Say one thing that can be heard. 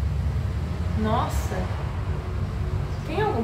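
A young woman makes short, muffled sounds with her voice close by.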